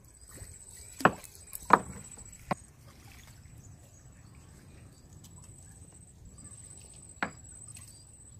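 Wooden knocks sound against a boat's side.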